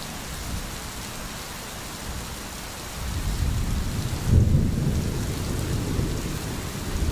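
A shallow stream babbles over stones.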